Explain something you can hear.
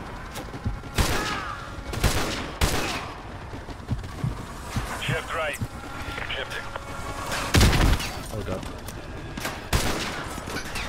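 Gunshots crack and echo in bursts.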